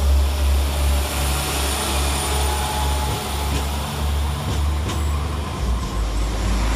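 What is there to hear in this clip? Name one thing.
A train rumbles past close by along the rails.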